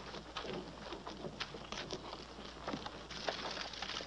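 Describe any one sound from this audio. A horse's hooves clop and stamp.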